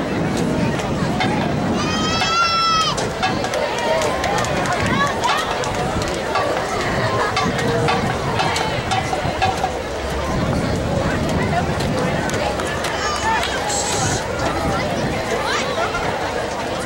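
A marching band plays outdoors in an open field.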